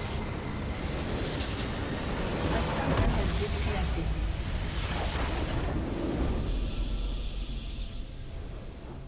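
Loud game explosions and magic blasts crash and roar.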